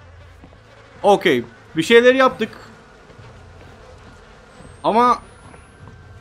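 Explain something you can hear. A young man shouts loudly into a close microphone in short bursts.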